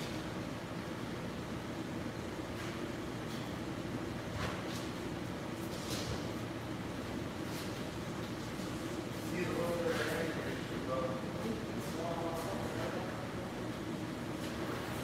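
A pressure washer sprays water steadily in a large echoing hall.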